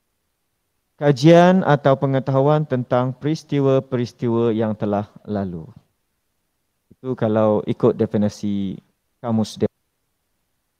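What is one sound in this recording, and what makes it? A man speaks calmly through a microphone in an online call.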